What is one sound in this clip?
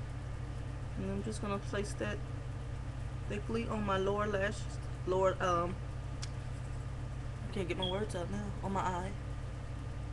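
A woman speaks calmly, close to a microphone, in short phrases.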